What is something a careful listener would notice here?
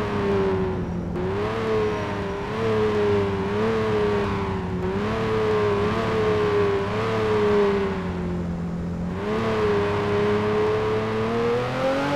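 A sports car engine revs hard, rising and dropping with each gear change.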